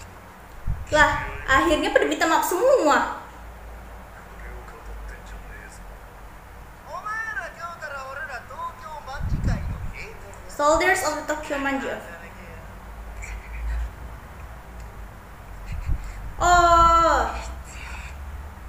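A young woman speaks calmly close by, in short bursts.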